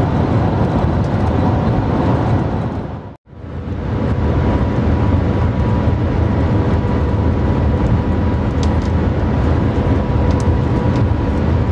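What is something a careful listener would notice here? A fast train rumbles and roars steadily from inside its cabin.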